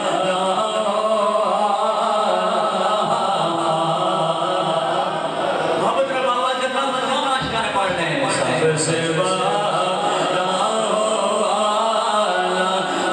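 A man sings or chants through a microphone and loudspeakers, with a steady melodic voice.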